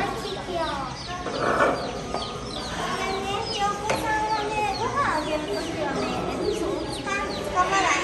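Many chicks cheep loudly and constantly close by.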